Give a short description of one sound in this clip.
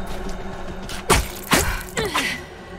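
A blade slashes and strikes a creature with sharp hits.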